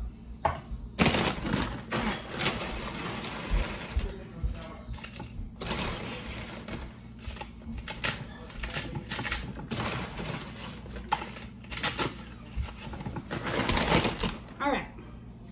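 A plastic chip bag crinkles and rustles close by.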